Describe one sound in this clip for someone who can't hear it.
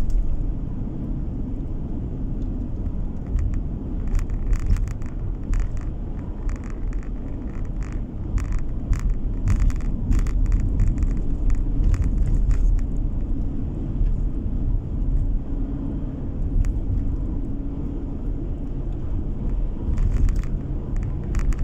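Tyres roll and rumble over the road surface.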